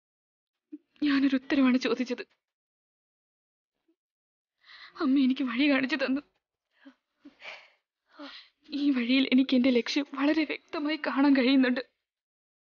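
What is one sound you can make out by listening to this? A young woman speaks softly and tearfully, close by.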